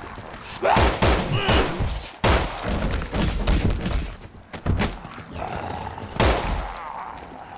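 Loud gunshots ring out in an echoing room.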